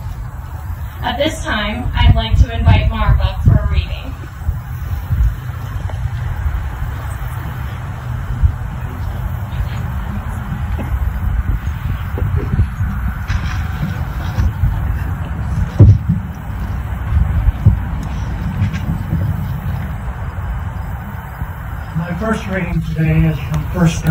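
A woman speaks calmly outdoors.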